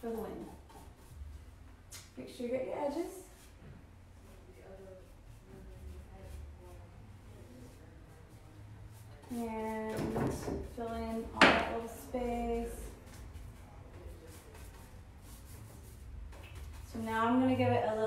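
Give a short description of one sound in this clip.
A paintbrush brushes softly across wood.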